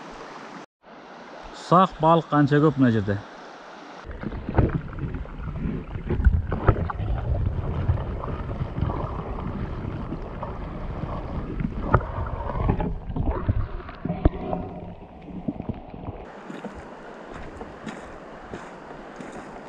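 A shallow river flows and ripples gently.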